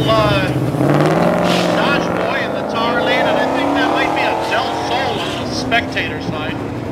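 A car engine roars and climbs in pitch as the car speeds away.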